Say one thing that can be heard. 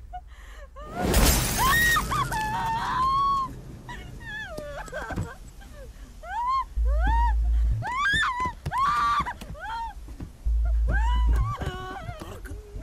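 A young woman cries out loudly in distress.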